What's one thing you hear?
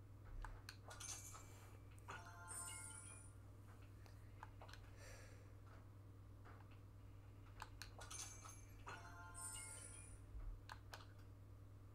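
A television plays short bright chimes from a game menu.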